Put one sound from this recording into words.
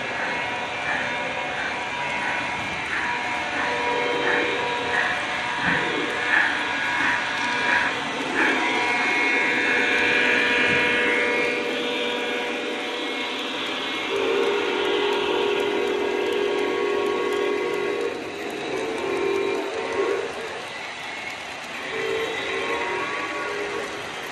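Model train wheels roll and rumble on metal track.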